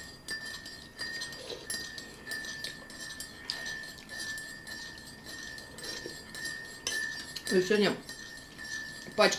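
A spoon clinks against a mug as tea is stirred.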